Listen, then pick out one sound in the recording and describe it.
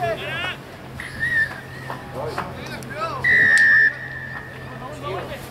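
A referee's whistle blows two sharp blasts.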